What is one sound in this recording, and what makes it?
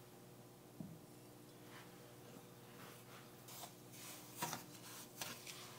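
Oil sizzles softly in a pan.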